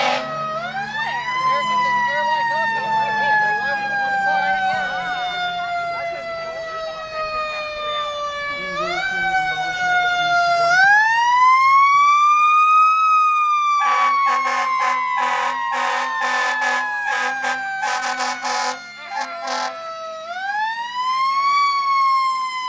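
A fire truck siren wails, rising and falling slowly.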